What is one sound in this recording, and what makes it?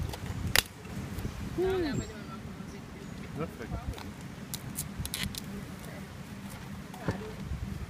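A machete blade chops and knocks against a tree root.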